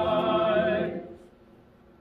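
A group of people sings a hymn, ending on a held note.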